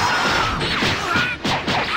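A punch lands with a heavy thud.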